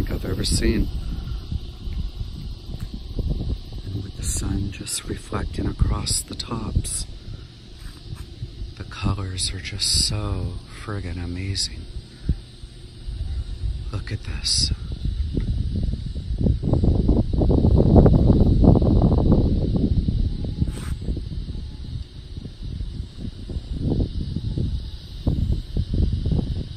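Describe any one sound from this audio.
Wind gusts and rumbles outdoors, swelling and easing.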